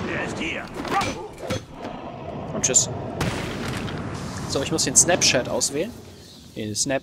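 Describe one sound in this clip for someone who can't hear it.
Heavy punches and kicks land with thuds.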